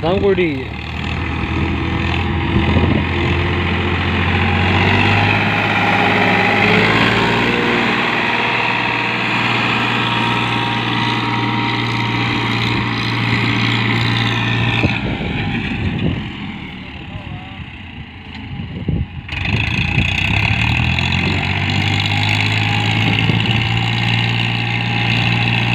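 A tractor engine chugs and roars nearby, fading as the tractor drives away and growing louder as it returns.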